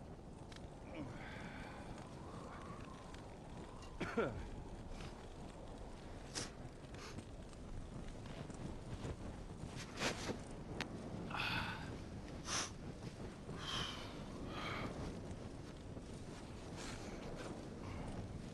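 A torch flame flutters and crackles.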